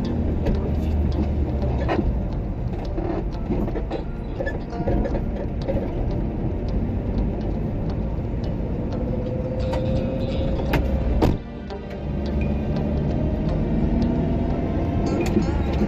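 A car engine hums steadily from inside the moving car.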